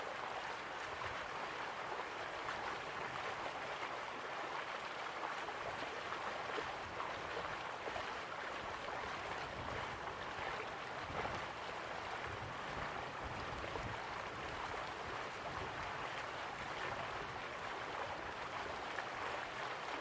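Waterfalls rush and splash steadily.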